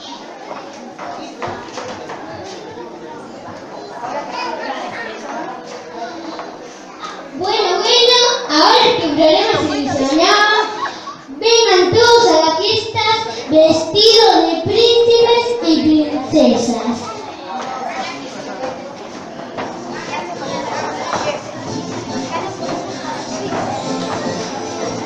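A crowd of children and adults chatters in the background.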